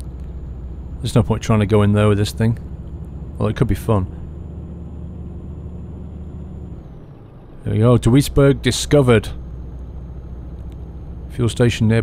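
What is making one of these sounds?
A truck engine hums steadily at low speed.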